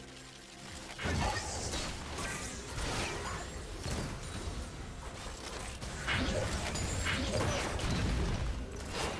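Magic spell effects whoosh and crackle in quick bursts.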